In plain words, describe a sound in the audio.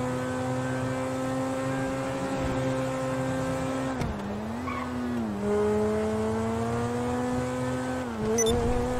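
A sports car engine hums steadily and drops in pitch as the gears shift.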